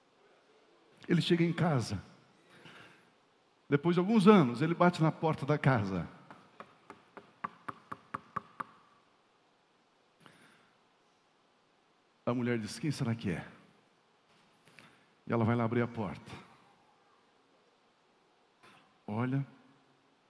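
A middle-aged man speaks with animation into a headset microphone, in bursts with pauses.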